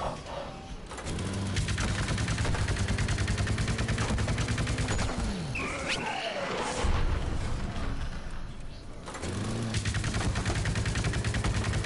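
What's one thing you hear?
Rapid cartoonish gunfire rattles steadily.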